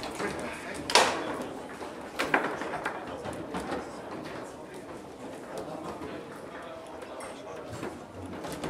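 A hall full of people murmurs in the background.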